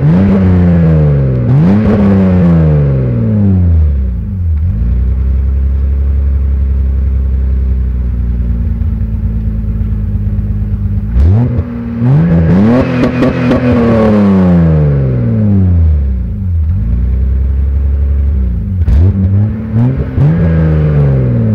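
A car engine idles close by and revs up and down repeatedly through a rumbling exhaust.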